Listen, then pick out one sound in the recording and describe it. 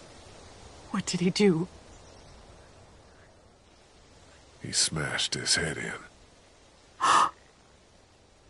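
A woman answers quietly and sadly.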